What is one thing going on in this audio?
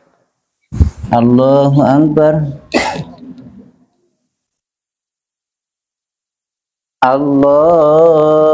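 A man chants a prayer call loudly through a loudspeaker in an echoing hall.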